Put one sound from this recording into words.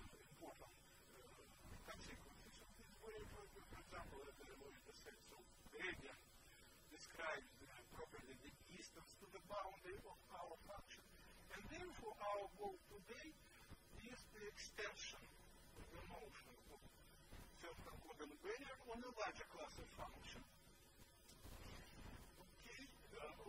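An elderly man lectures calmly in a large room, heard through a microphone.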